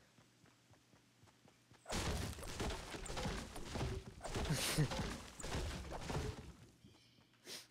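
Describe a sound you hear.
An axe chops repeatedly into wood.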